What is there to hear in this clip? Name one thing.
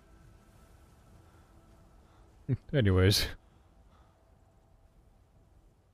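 Footsteps tread softly through grass.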